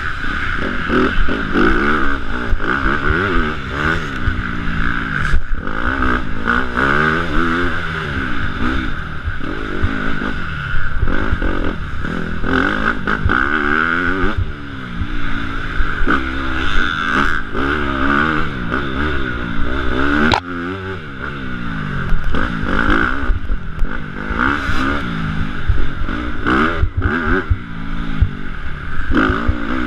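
A dirt bike engine revs up and down loudly as the bike races along a track.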